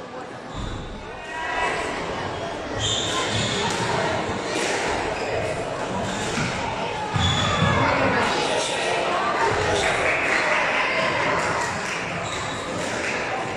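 A squash ball smacks against the walls in an echoing court.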